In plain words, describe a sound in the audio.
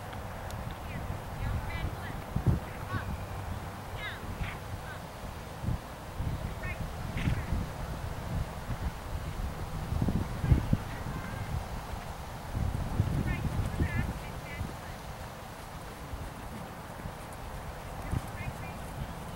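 A horse's hooves thud softly on soft ground.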